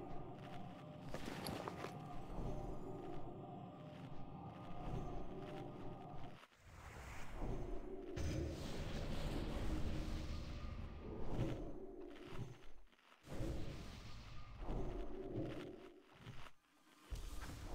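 Spell effects whoosh and crackle during a fantasy battle.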